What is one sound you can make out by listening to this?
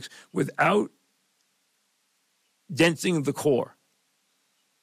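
An older man speaks into a microphone in short phrases.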